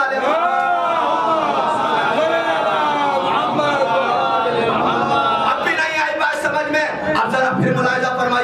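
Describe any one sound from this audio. A young man chants in a loud, sustained melodic voice through a microphone.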